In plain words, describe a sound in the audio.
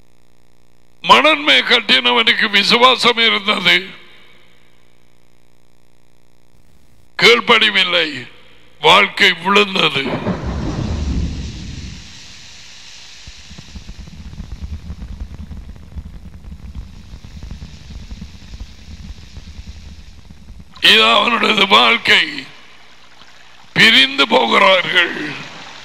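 An older man speaks with animation into a close microphone.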